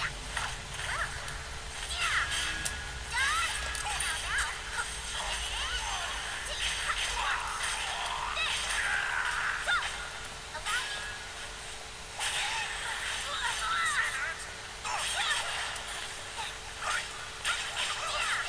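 Metal blades clash and strike repeatedly in a fast fight.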